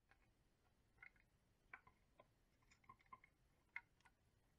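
Small plastic parts click and tap as they are handled.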